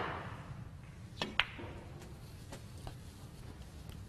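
Snooker balls click sharply together.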